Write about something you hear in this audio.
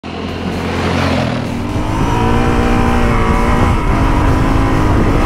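A motorcycle engine revs and roars as the motorcycle speeds along.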